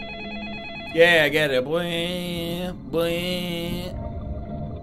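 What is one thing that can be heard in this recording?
A man speaks calmly into a telephone.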